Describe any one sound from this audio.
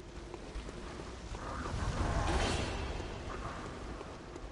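Fire bursts and roars briefly.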